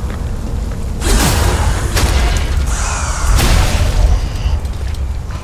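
Heavy sword blows strike an enemy with loud impacts.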